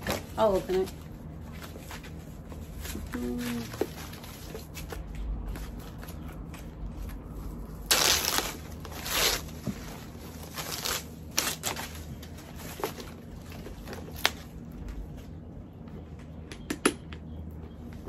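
Plastic wrapping rustles and crinkles close by.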